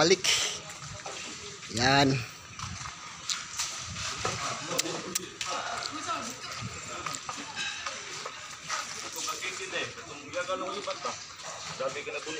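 Several men talk casually close by, outdoors.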